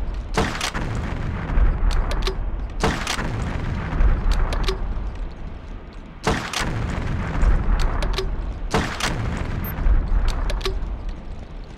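A rifle fires loud single shots and short bursts.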